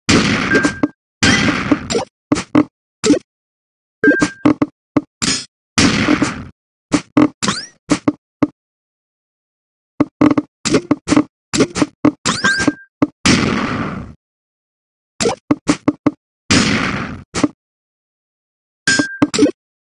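Falling blocks in a puzzle game land with short, sharp clicks.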